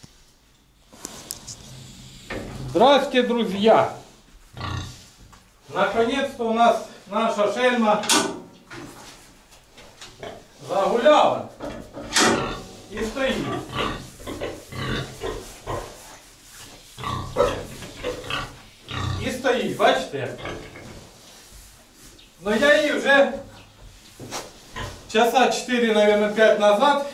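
Pigs grunt and shuffle in their pens.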